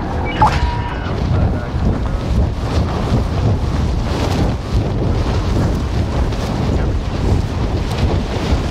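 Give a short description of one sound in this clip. A young man talks into a close microphone.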